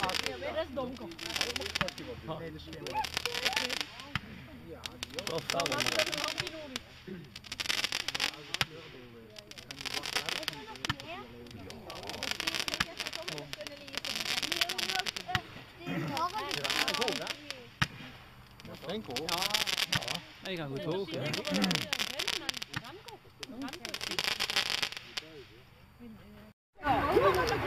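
Firework rockets hiss and crackle as they shoot up, one after another.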